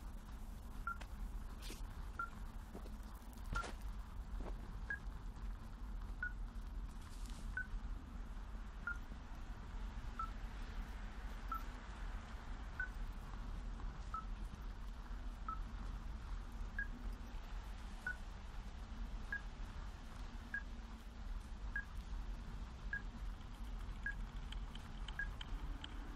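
A handheld device beeps at a steady pace.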